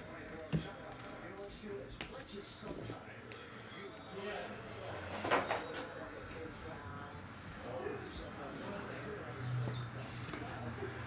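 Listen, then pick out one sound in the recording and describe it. Trading cards rustle and click as hands shuffle them.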